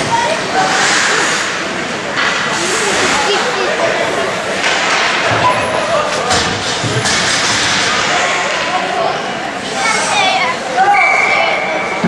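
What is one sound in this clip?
Hockey sticks tap and clack on the ice.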